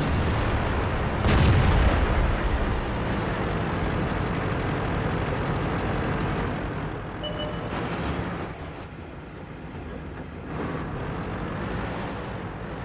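A heavy tank's engine rumbles as it drives.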